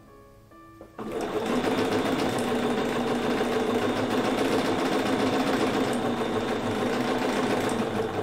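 A sewing machine stitches rapidly and steadily.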